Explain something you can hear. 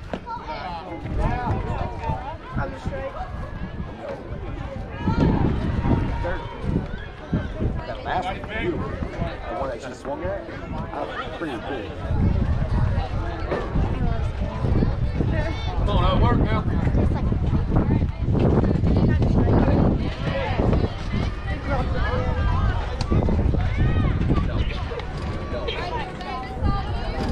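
Several people chatter and call out nearby in the open air.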